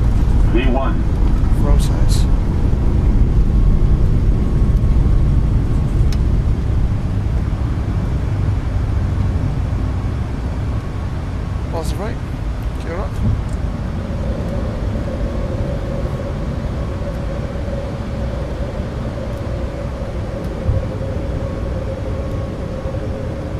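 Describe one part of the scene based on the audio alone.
Jet engines roar loudly during takeoff and climb.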